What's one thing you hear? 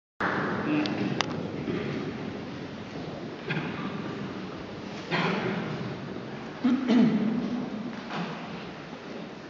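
A men's choir sings together in a large echoing hall.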